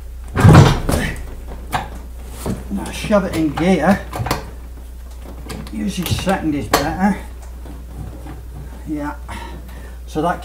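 Metal parts clank and knock as a gearbox is handled.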